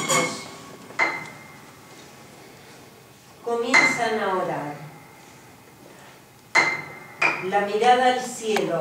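Piano strings are plucked and struck inside the piano, ringing out.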